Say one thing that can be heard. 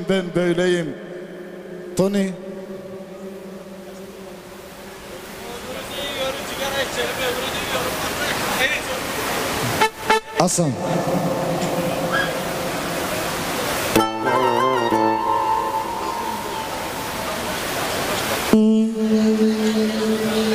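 A crowd of men and women chatter loudly nearby.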